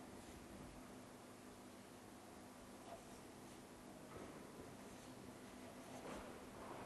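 A marker squeaks faintly on paper.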